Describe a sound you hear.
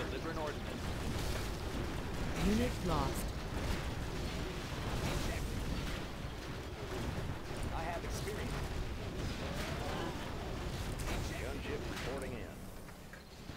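Explosions and gunfire rumble and crackle in a noisy battle.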